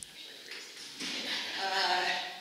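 An older woman laughs heartily.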